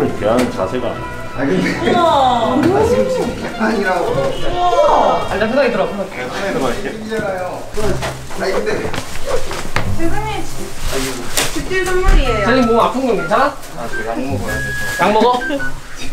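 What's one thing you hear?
Young men and a young woman talk and laugh with animation close by.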